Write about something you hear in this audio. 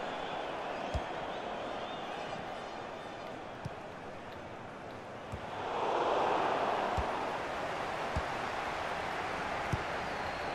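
A football is kicked with dull thumps now and then.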